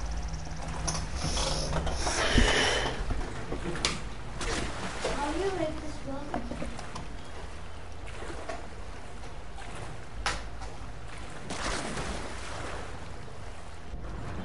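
Water splashes and laps as a swimmer paddles through it.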